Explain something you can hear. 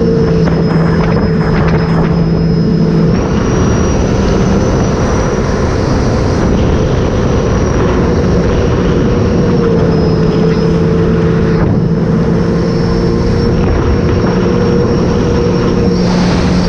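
A jet ski engine roars steadily at speed.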